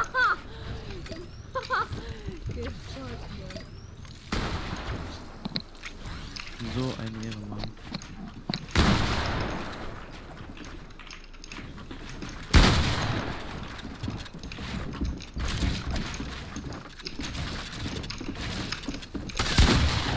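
Wooden walls and ramps snap into place with quick clattering knocks.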